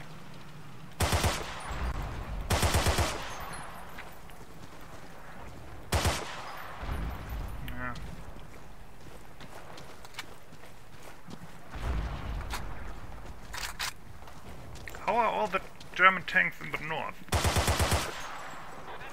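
A rifle fires short rapid bursts that echo outdoors.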